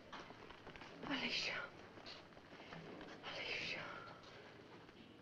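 A woman moans softly close by.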